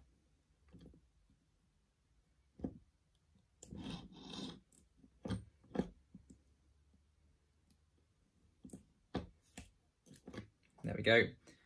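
A screwdriver clicks and scrapes against small metal parts.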